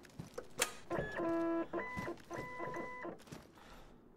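An electronic card reader beeps several times.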